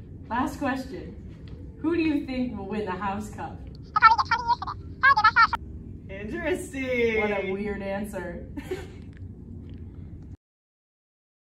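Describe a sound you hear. Two young women talk close by.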